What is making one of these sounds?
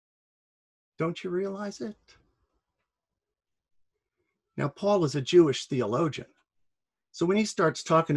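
A middle-aged man talks calmly and close up, in short bursts with pauses.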